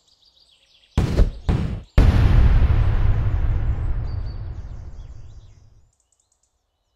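A video game makes a deep booming whoosh as a level begins.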